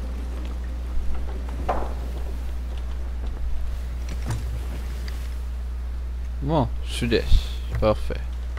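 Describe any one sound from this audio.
Wooden ship timbers and ropes creak.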